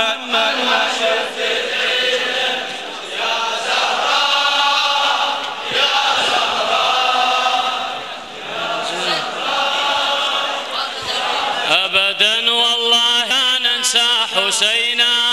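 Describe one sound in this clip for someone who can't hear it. A large crowd of young men chants together loudly.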